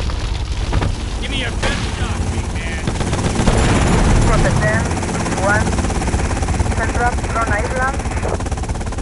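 A gun fires quick bursts of shots.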